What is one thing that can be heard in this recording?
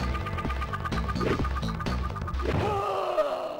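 Bouncy chiptune game music plays with a steady beat.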